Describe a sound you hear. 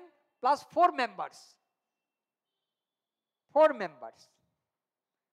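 A man speaks calmly and clearly into a close microphone, in short phrases with pauses.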